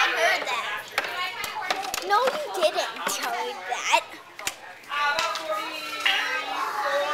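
A young girl talks and giggles with animation, close by.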